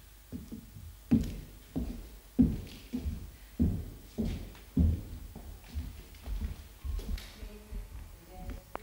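Footsteps thud and slap on a wooden floor in an echoing room.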